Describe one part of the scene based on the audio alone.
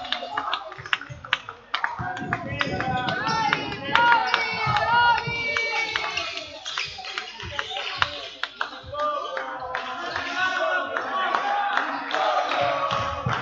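Spectators murmur and call out in the hall.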